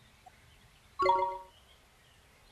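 A bright game chime rings out once.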